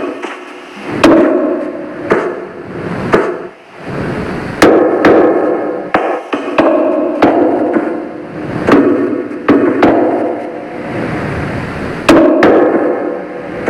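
Blocks are placed with soft dull thuds.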